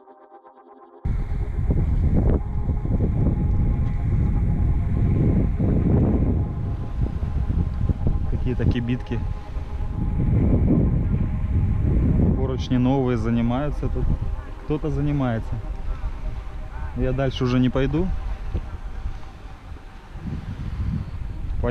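Wind buffets the microphone loudly outdoors.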